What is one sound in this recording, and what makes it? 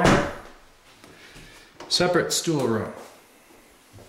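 A door latch clicks and a door swings open.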